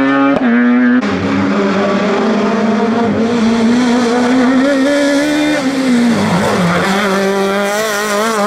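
A second racing car engine screams loudly close by as the car passes.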